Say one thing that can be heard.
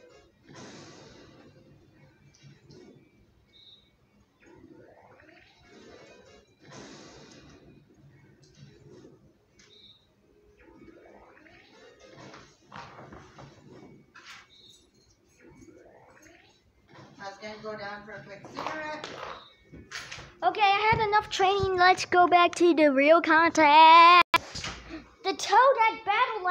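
Video game music and sound effects play from a television.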